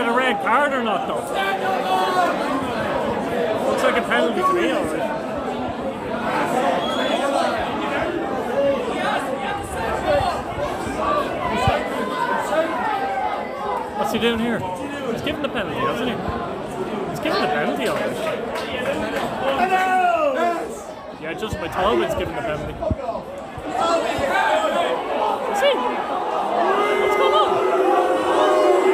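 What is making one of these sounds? A crowd of fans cheers and chants loudly outdoors.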